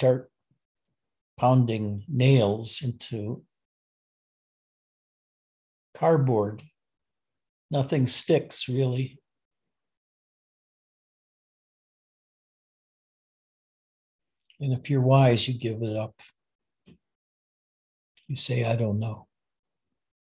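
An elderly man speaks calmly over an online call, with pauses.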